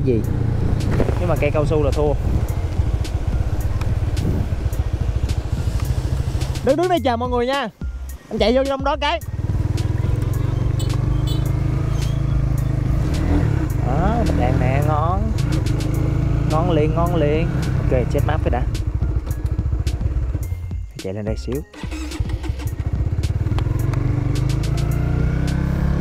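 A motorbike engine drones steadily while riding.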